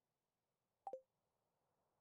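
A short game blip sounds as a menu opens.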